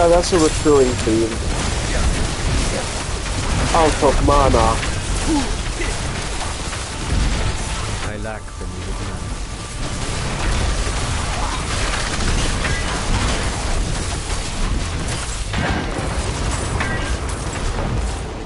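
Spells and weapons clash and crackle in a busy battle.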